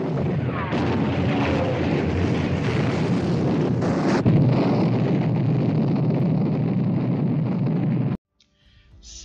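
Heavy shell explosions boom and rumble over the sea.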